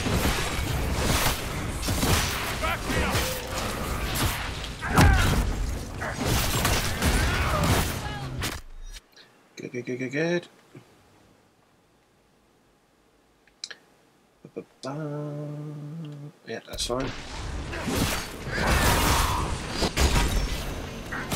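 Blades clash and strike in quick blows.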